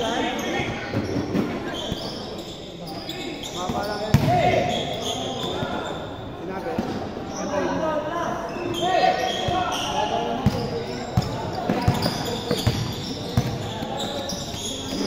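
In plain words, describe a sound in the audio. Sneakers squeak on the court floor.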